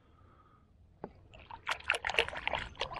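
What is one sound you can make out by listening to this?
Water splashes as a fish is let go.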